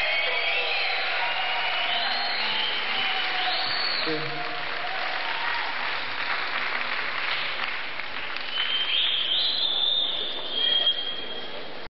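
Electric guitar feedback squeals and wails through loud amplifiers.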